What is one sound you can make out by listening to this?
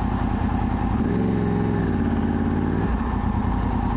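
A motorcycle engine revs up, rising then dropping in pitch.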